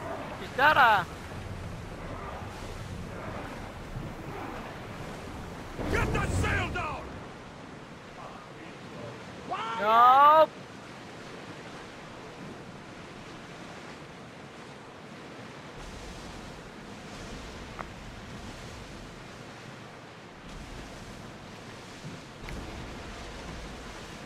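Waves wash and splash against a ship's hull as it sails through open sea.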